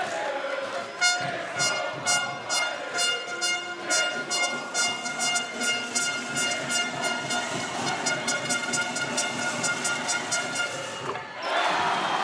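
A large crowd claps in rhythm.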